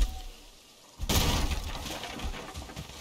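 A log bursts apart with a loud crash.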